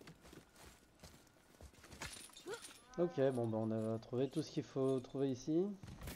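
A metal chain rattles and clinks as a man climbs.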